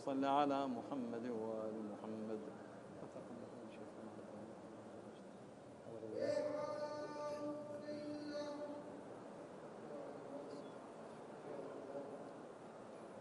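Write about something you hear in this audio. An elderly man chants a prayer slowly through a microphone.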